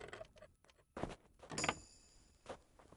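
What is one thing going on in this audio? A lock snaps open with a sharp click.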